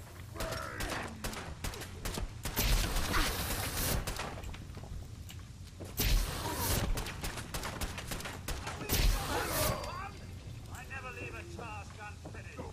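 A young man talks close into a microphone.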